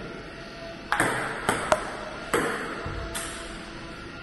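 A table tennis ball clicks against paddles and the table.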